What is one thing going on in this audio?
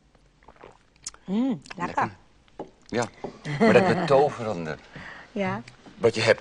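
A middle-aged woman speaks with animation nearby.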